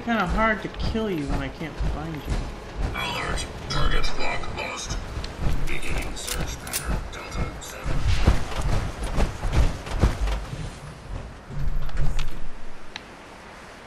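Heavy metal footsteps thud steadily.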